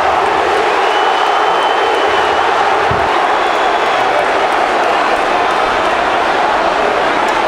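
A large crowd chants and cheers loudly in a big echoing stadium.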